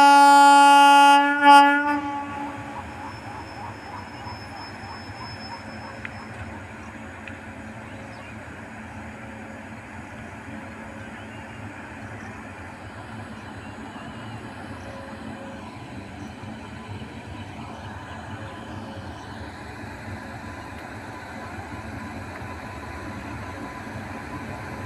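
A train rumbles steadily along the tracks as it approaches.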